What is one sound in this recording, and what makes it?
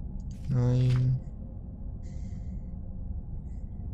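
A book page turns with a soft paper rustle.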